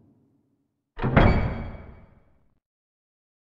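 Heavy wooden doors swing open with a low rumble.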